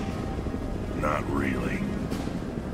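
A man speaks briefly in a low, gruff voice.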